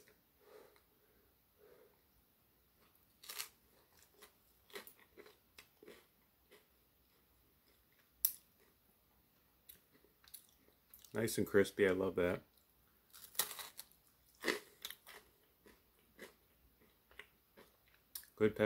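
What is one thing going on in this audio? A man chews food noisily close by.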